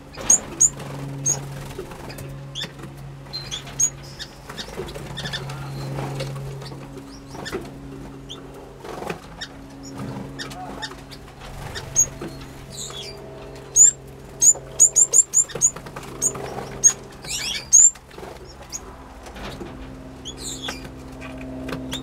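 Small birds chirp and tweet in short bursts.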